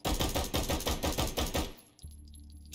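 A pistol fires a rapid burst of loud shots.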